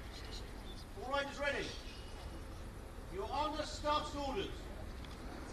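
A man calls out briefly from a crowd.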